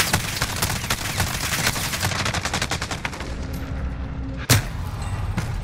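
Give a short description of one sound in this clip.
Rapid gunfire crackles loudly.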